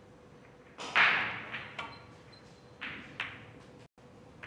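Billiard balls clack against each other on the table.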